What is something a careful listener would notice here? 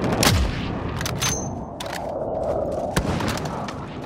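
A rifle's bolt clicks and clacks as it is reloaded.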